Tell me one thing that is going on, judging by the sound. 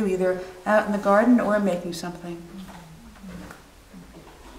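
An elderly woman speaks calmly and thoughtfully, close to a microphone.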